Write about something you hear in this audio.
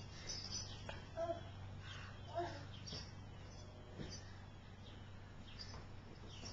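Leather cushions creak and rustle under a crawling baby.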